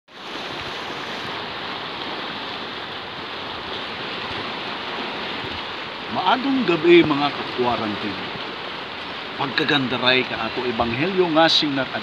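Waves wash against rocks outdoors in wind.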